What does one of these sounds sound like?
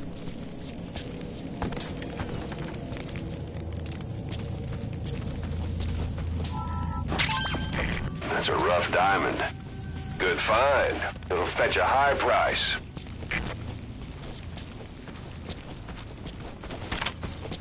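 Footsteps crunch quickly on gravel.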